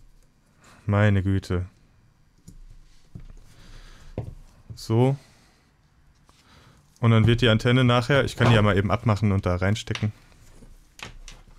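Small plastic and metal parts click and tap as they are handled.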